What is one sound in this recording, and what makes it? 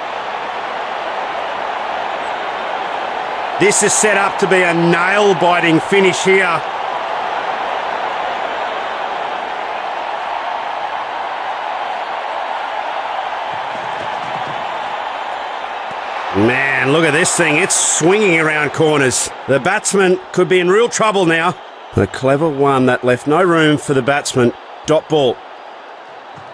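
A stadium crowd murmurs steadily in the distance.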